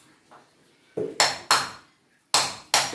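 A hammer knocks sharply on tile.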